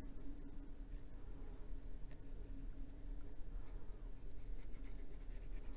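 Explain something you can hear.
A brush tip softly strokes and taps on paper.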